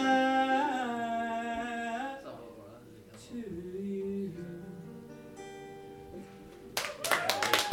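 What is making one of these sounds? An acoustic guitar strums and rings out.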